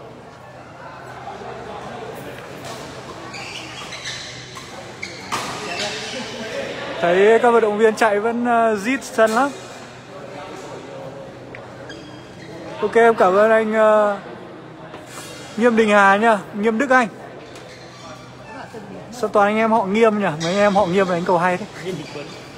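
Rackets hit a shuttlecock with sharp pops.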